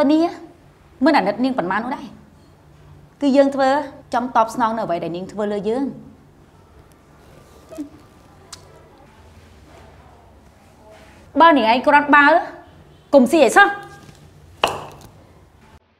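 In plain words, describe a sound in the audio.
A middle-aged woman speaks close by in short, lively bursts.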